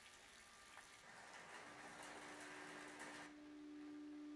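Raindrops splash into a shallow puddle.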